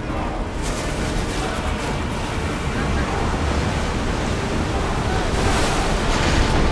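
Waves splash and rush against a wooden ship's hull.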